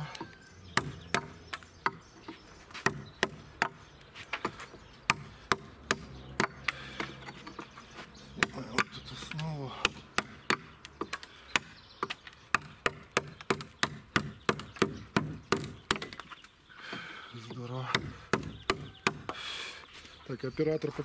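A wooden mallet knocks steadily on a chisel, cutting into wood with sharp, regular taps.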